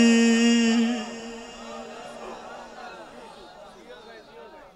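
A crowd of men murmurs and calls out nearby.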